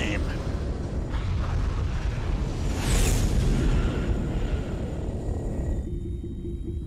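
A spacecraft engine roars past.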